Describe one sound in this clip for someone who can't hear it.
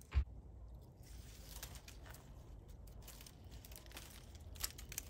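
Leaves rustle and twigs snap as a hand pulls at a climbing vine.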